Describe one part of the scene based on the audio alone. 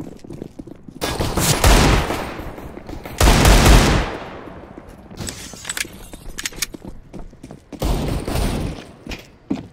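Pistol shots ring out loudly.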